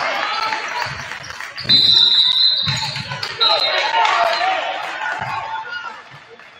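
A basketball bounces on the hardwood.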